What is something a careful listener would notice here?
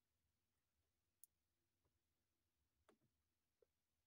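A finger taps lightly on a touchscreen.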